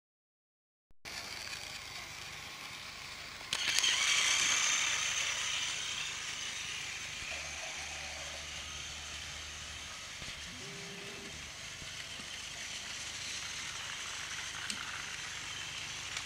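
A small toy train motor whirs steadily.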